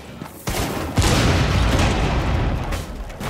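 A wooden barricade is smashed and splinters.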